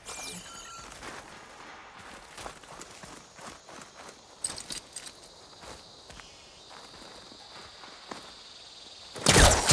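Footsteps crunch on soft ground.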